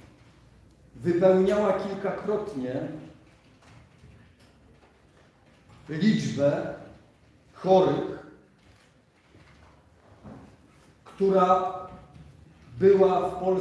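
A middle-aged man speaks in short bursts with pauses, in a large echoing room.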